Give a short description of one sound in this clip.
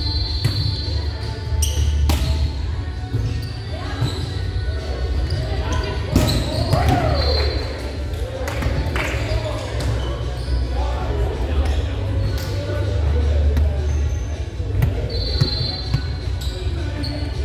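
Sneakers squeak on a hardwood floor.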